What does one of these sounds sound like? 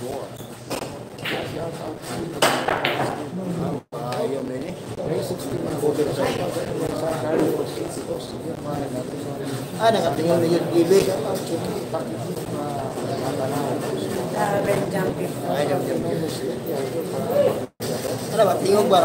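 A crowd of young men chatters and murmurs nearby.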